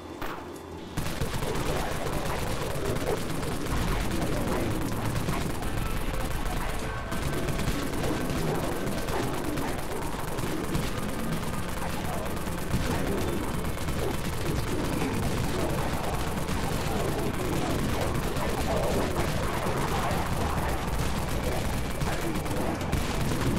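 Rapid gunfire rattles without pause.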